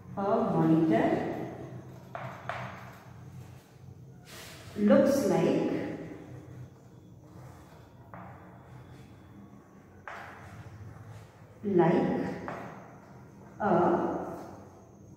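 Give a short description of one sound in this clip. A young woman speaks slowly and clearly, as if teaching, close by.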